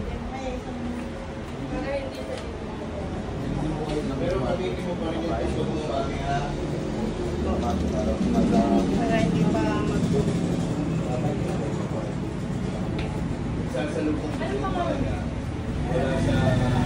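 Several young men and women chat nearby.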